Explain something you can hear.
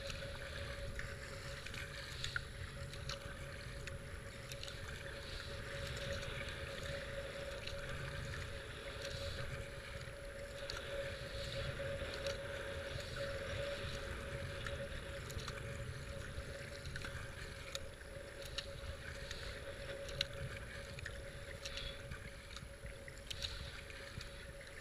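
A paddle splashes rhythmically in the water.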